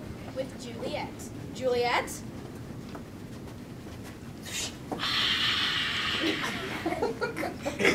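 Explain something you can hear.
Young girls talk and call out.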